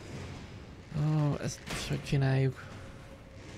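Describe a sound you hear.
A young man speaks briefly into a close microphone with animation.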